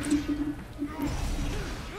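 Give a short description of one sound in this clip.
A heavy blast rumbles deeply.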